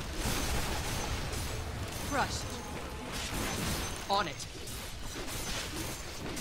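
Weapons clash and spells burst in a fast video game fight.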